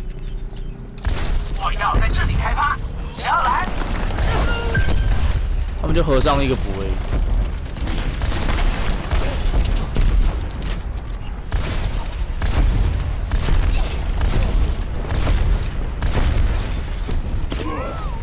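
Game gunfire fires in rapid bursts.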